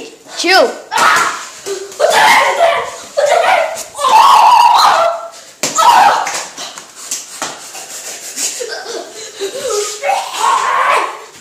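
A young boy's bare feet thump and shuffle on a wooden floor.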